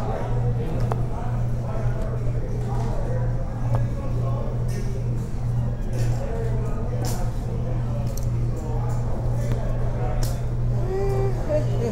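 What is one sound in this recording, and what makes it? Poker chips click together on a table.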